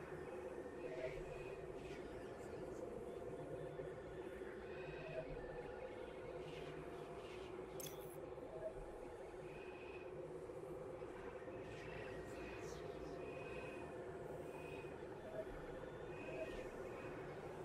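Soft electronic blips chirp now and then.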